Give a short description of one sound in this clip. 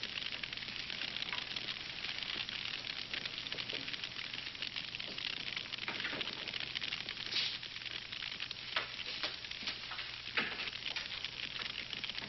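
Footsteps thud on a hard floor in a large, echoing room.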